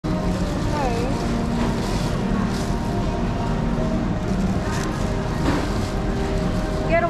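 Shoppers chatter in a busy, echoing indoor space.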